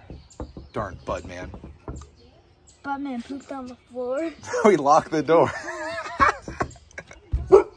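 A boy knocks on a glass window.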